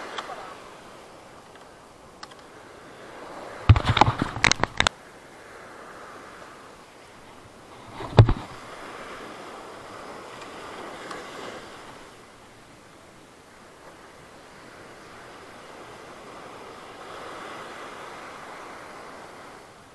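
Waves wash steadily onto a sandy shore.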